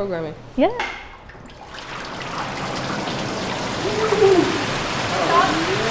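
Water and pulp pour from buckets with a heavy splash.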